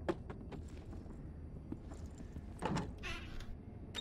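A wooden cabinet door creaks open.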